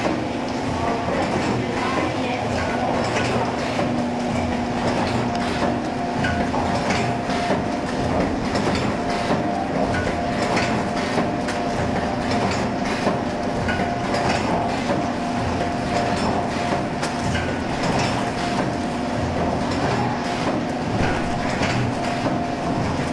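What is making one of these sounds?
A packaging machine hums and clatters steadily.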